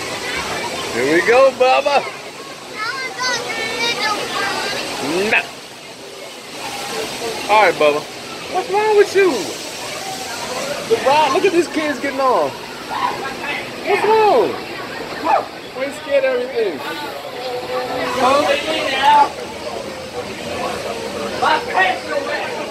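A young girl cries and whimpers close by.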